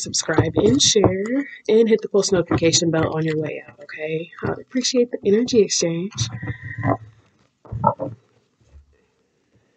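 Playing cards shuffle and riffle.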